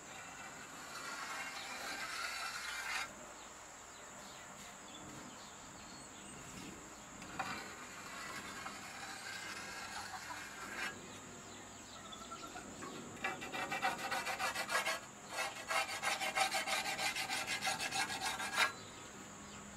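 A chalk marker scratches across a metal saw blade.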